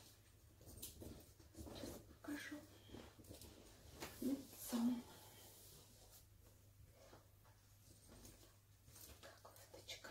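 A quilted fabric jacket rustles as it is handled and put on.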